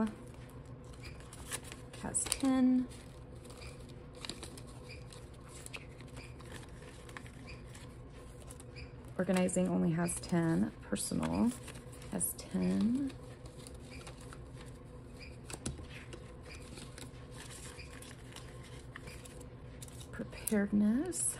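Plastic sleeves crinkle and rustle as they are handled.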